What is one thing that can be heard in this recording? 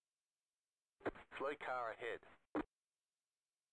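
A man speaks briefly through a microphone.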